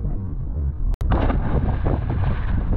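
A body splashes hard into the sea.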